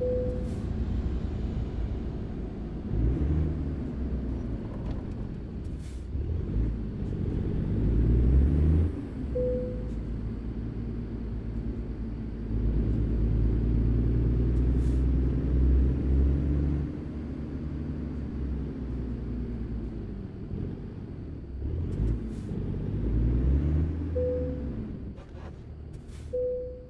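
A truck's diesel engine rumbles steadily, revving up and down as it shifts gears.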